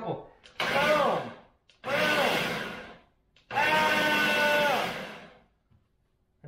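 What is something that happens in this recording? A blender motor whirs in short pulses.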